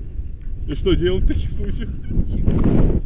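A young man speaks close to the microphone.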